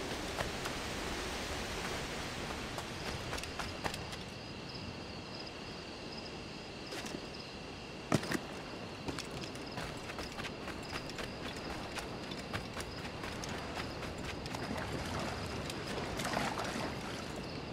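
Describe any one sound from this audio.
Footsteps crunch on rocks and sand.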